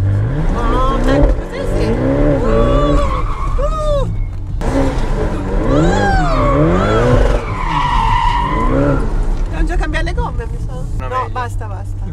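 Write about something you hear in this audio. A sports car engine roars and revs up and down from close by.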